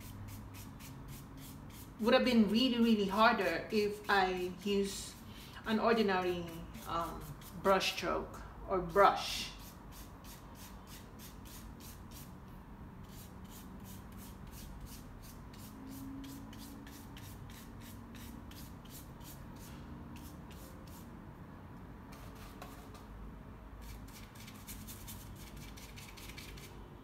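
A brush softly brushes paint onto canvas.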